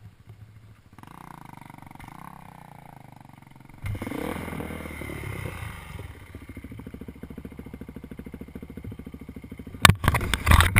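A dirt bike engine sputters to life and idles close by.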